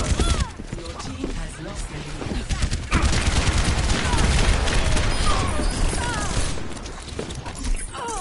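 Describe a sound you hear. A laser beam hums and crackles.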